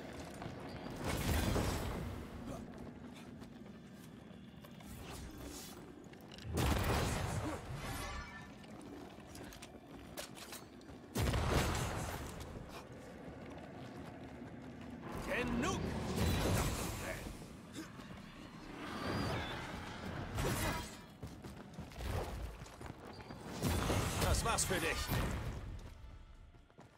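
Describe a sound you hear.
Heavy weapon blows land with loud crashing bursts.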